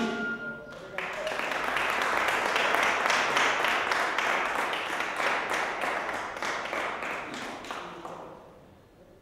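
A small group claps.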